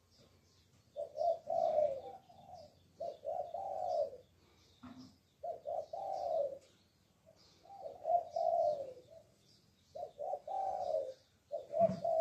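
A dove coos in repeated low phrases, close by.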